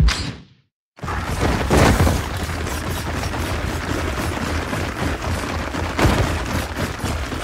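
Heavy footsteps thud as armoured soldiers run.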